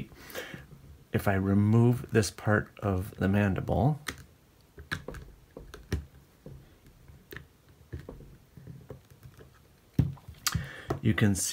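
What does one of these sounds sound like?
Hard plastic pieces click and tap as they are handled.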